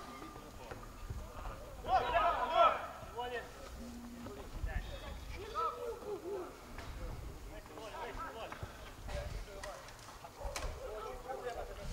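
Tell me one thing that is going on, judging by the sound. Men shout across an open field during a game.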